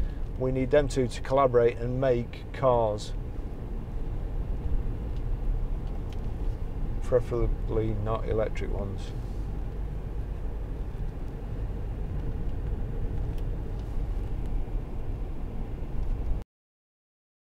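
A car engine hums steadily inside the cabin while driving.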